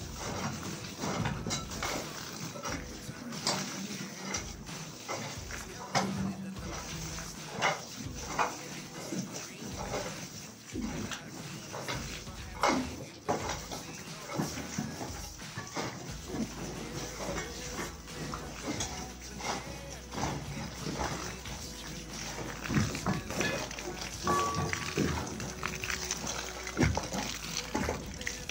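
Shovels scrape and thud through wet earth.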